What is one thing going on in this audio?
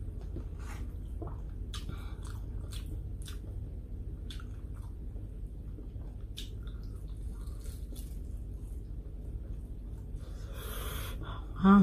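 Food crackles and rustles as fingers pick it up from a plate.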